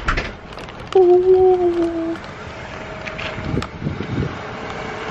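A young man speaks loudly and with animation close by, drawing out a long vocal sound.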